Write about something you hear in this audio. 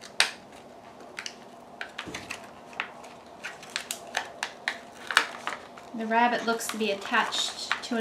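Fingers peel stickers from a backing sheet with small ticks and clicks.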